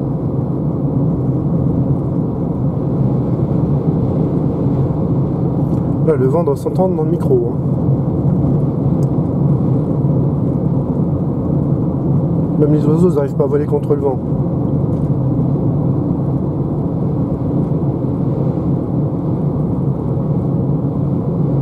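A car drives along at speed with a steady low rumble of tyres on the road.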